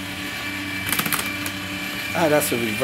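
A shredder cuts through paper with a crunching whir.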